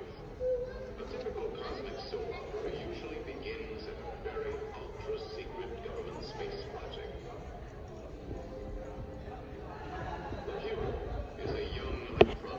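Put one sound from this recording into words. Music from a film soundtrack plays through loudspeakers in a large hall.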